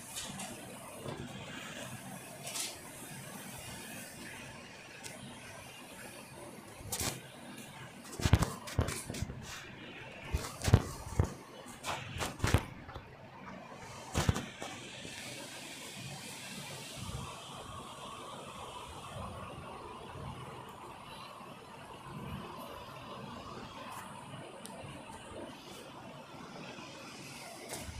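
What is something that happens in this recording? Footsteps run quickly over hard ground and grass.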